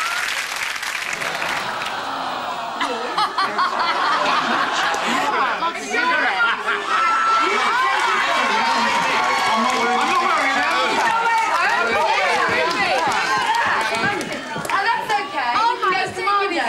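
Several men talk and laugh loudly close by.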